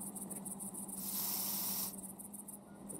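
A magical spell flares up with a bright rushing hiss.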